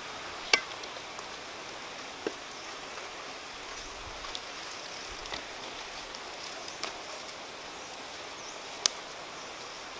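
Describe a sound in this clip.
A wood fire crackles softly.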